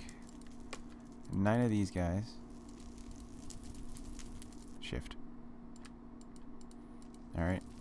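Soft game clicks sound as items are moved around.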